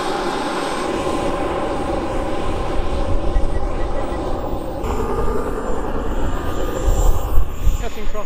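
Wind buffets loudly against the vehicle.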